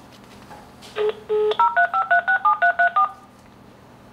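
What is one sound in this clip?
A phone plays a quick run of dialing tones.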